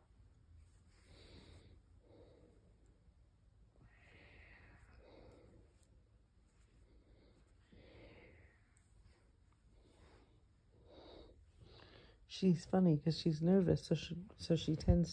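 A cat purrs softly.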